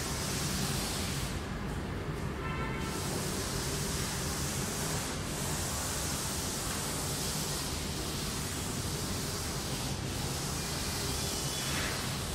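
A duster rubs against a chalkboard.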